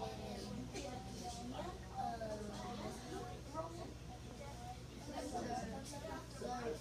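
Young children chatter and call out all around in a busy room.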